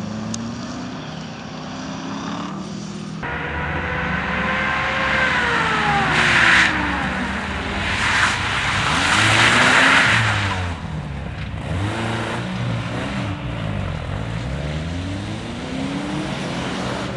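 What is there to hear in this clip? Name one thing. A car engine revs hard and its pitch rises and falls with gear changes.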